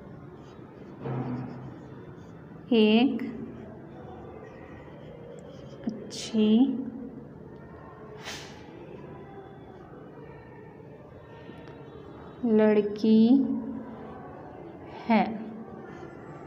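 A woman speaks in short, drawn-out phrases nearby, as if reading out slowly.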